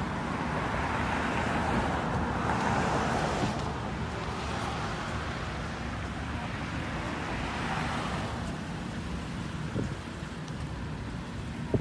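Wind buffets the microphone outdoors, with a steady low rumble.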